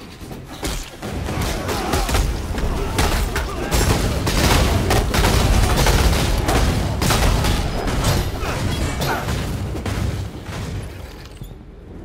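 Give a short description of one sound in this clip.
Game spells crackle and burst with fiery explosions.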